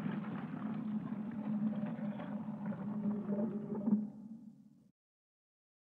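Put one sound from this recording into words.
A heavy stone statue grinds as it slowly turns and fades out.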